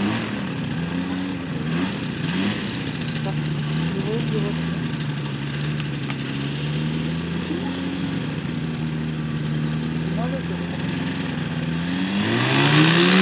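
A paramotor engine idles with a steady drone.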